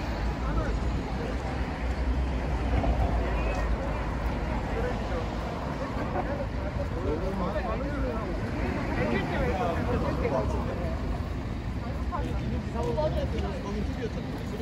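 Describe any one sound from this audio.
Traffic rumbles steadily along a nearby street outdoors.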